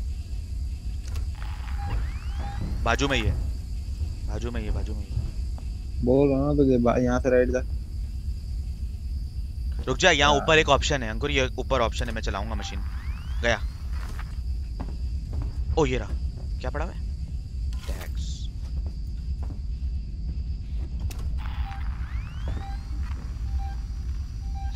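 A motion tracker beeps softly at intervals.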